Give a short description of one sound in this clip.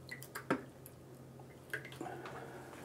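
A brush clinks against a metal cup.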